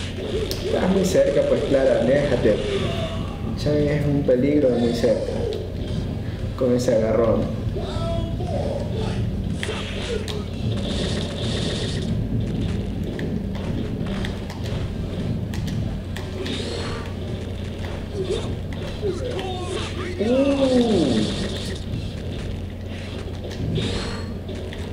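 Fighting game punches and kicks land with sharp thuds and whooshes.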